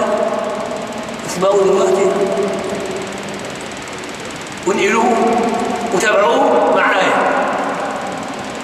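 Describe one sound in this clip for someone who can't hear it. An elderly man speaks slowly and earnestly into a close microphone, in a room with some echo.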